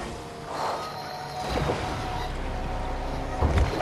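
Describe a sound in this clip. Water splashes under a car's wheels.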